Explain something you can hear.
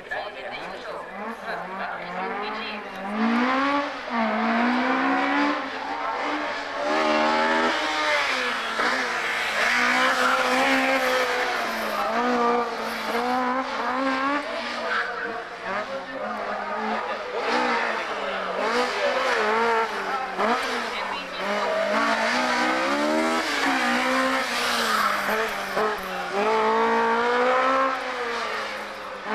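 A racing car engine revs hard, rising and falling as it shifts gears.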